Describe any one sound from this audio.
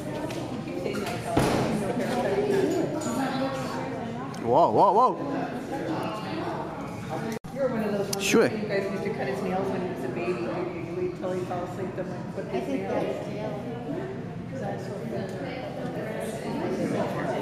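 A crowd of spectators chatters and calls out in a large echoing rink.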